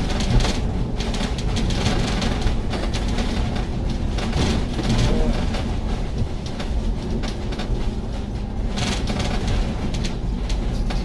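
Loose panels rattle and knock inside a moving bus.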